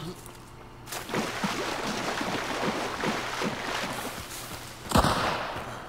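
Feet wade and splash through shallow water.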